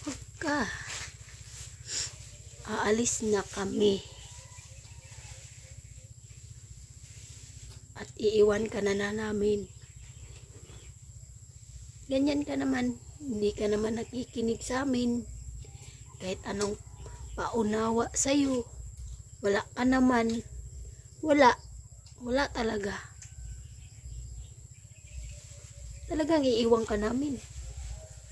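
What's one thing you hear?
A middle-aged woman speaks calmly and quietly, close by, in short bursts.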